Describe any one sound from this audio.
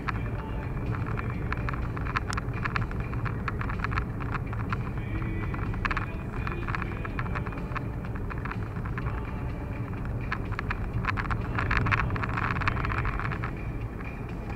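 Tyres rumble and hiss on a wet road.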